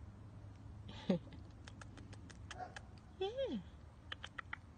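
A tiny puppy gives a short, high whimper.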